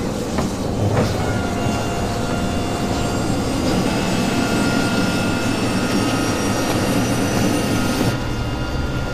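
Propeller aircraft engines drone loudly, growing stronger.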